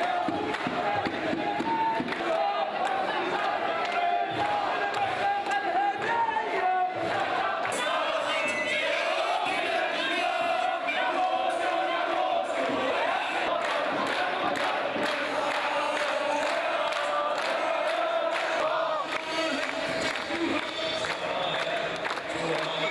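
A large crowd chants loudly together outdoors.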